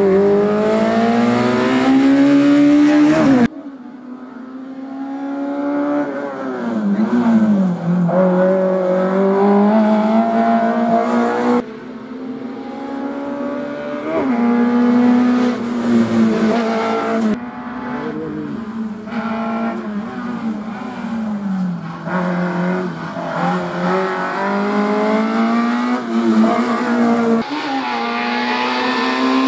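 A small race car engine revs hard, rising and falling as it shifts gears.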